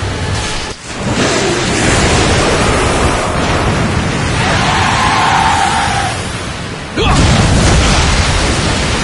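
Water crashes and roars as a huge creature bursts from a lake.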